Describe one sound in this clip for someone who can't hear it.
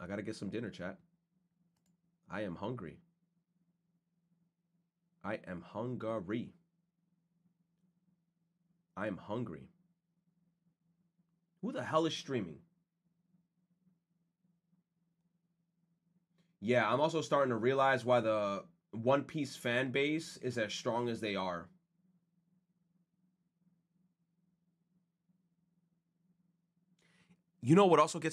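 A young man speaks casually in short bursts into a close microphone.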